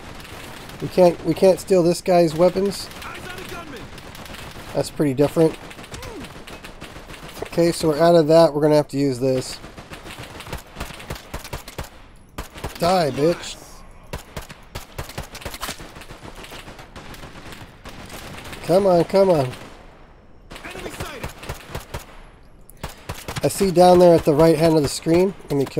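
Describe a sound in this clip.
A man talks with animation into a close microphone, in bursts.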